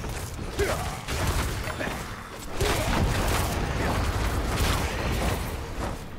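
Fire bursts and roars in a game battle.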